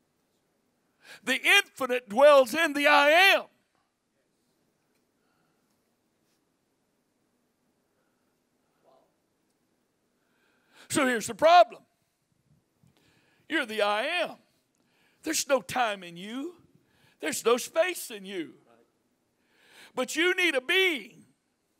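A middle-aged man speaks into a microphone with animation, in bursts with long pauses, heard through a loudspeaker.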